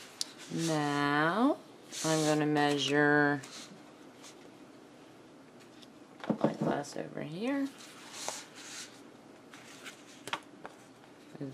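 Fabric rustles softly as a hand smooths and folds it.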